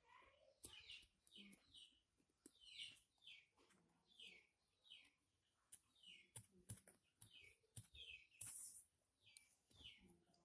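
Small metal parts click and tap as they are handled.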